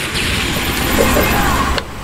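Gunfire cracks in quick bursts.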